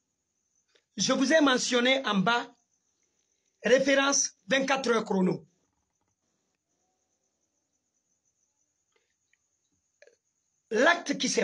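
A young man speaks with animation close to a microphone, in short bursts with pauses.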